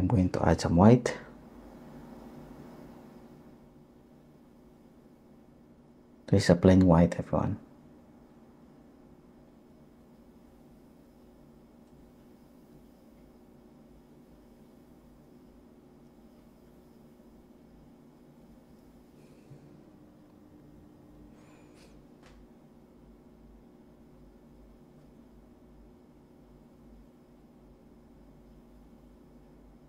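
A brush strokes softly on canvas.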